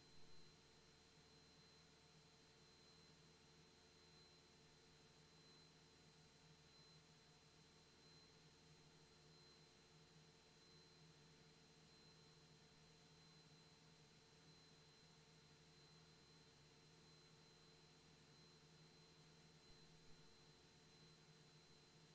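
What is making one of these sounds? An aircraft engine drones steadily, heard from inside the cabin.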